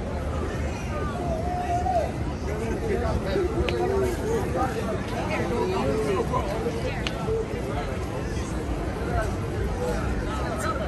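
A crowd of men and women chatter and talk nearby outdoors.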